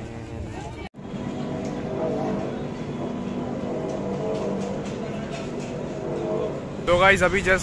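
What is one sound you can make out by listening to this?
A cable car machine hums steadily.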